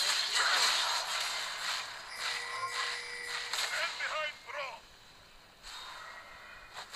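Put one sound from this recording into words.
Game fighting sound effects crackle, clang and whoosh in quick bursts.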